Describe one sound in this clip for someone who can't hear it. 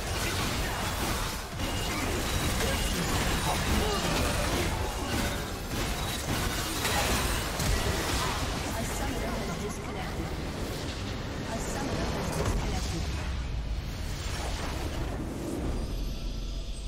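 Game spell effects and weapon hits clash rapidly in a loud battle.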